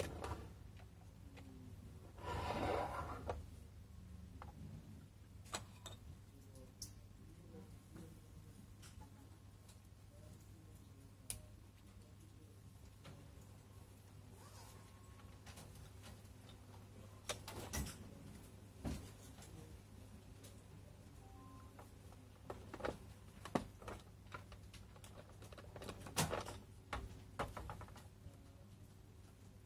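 Plastic toy parts click and rattle as hands fit them together.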